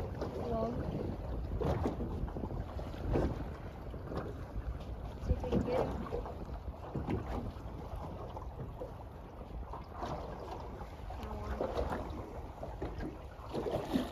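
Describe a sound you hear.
Wind rushes past outdoors on open water.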